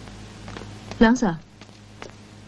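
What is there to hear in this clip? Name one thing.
A man calls out briefly.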